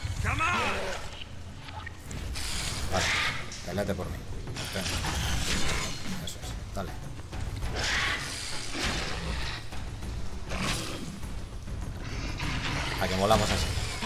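Swords clash and swoosh in a fight.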